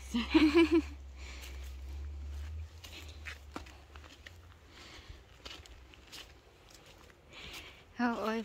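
Footsteps crunch softly on dry plant stalks and soil outdoors.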